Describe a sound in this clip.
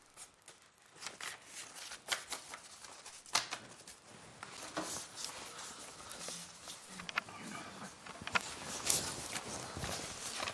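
Paper banknotes rustle and crinkle as they are counted by hand.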